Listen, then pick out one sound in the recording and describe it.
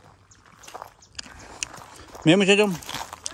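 Dry grass crunches underfoot as someone walks.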